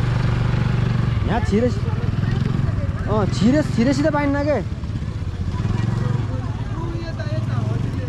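A scooter engine hums steadily as it rides close by.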